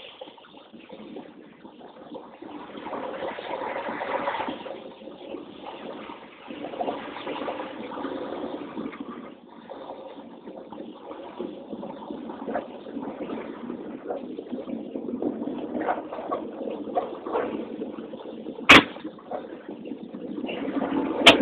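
A car engine hums steadily as it drives slowly.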